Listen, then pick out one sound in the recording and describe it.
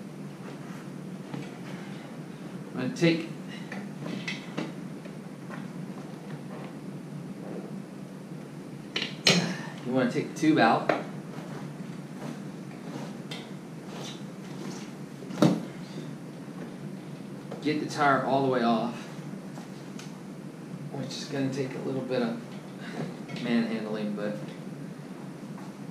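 A rubber bicycle tyre rubs and squeaks as it is worked onto a rim.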